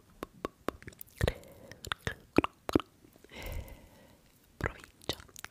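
Fingernails tap and click close to a microphone.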